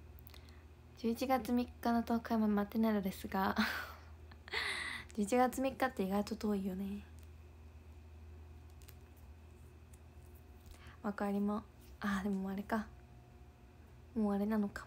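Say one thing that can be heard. A young woman talks with animation, close to a phone microphone.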